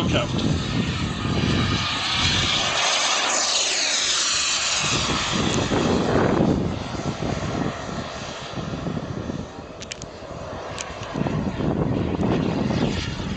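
A model jet roars overhead, its whine rising and falling as it passes.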